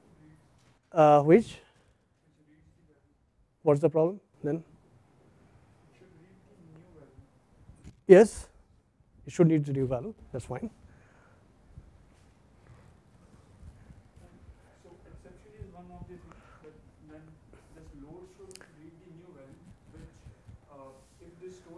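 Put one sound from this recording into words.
A man speaks calmly through a clip-on microphone, in loud bursts with pauses and then more quietly.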